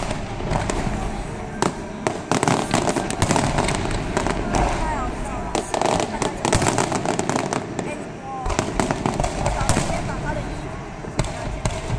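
Fireworks burst with rapid booms and sharp crackles.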